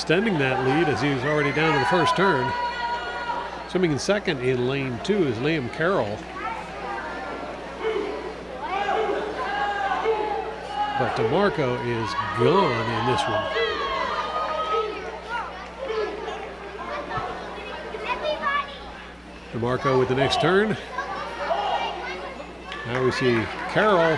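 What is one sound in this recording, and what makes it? A crowd of young people cheers and shouts loudly in an echoing hall.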